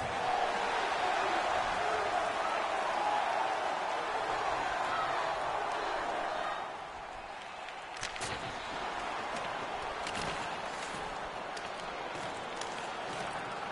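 A large crowd roars steadily in an echoing arena.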